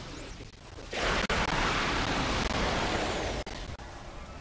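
A loud explosion bursts and roars briefly.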